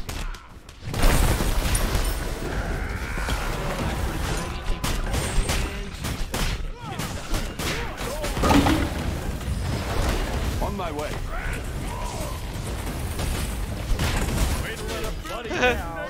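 Game combat effects clash and crackle with magic blasts and hits.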